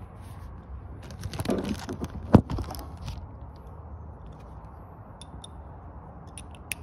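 A plastic sheet crinkles and rustles close by.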